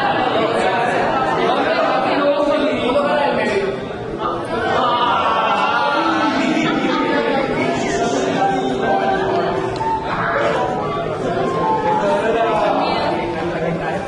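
A group of people laugh together.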